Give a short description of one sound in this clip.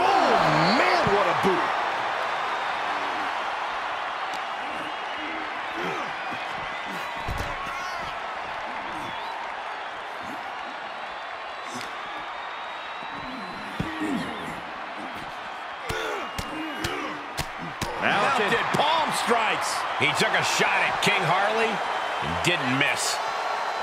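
A crowd cheers and roars loudly throughout.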